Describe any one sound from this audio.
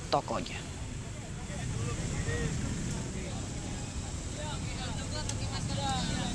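Several men and women talk over one another nearby, outdoors.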